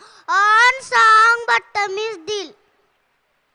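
A young girl speaks loudly into a microphone through loudspeakers.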